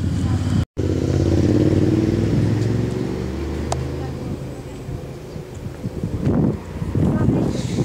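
A group of adult women and men talk casually nearby.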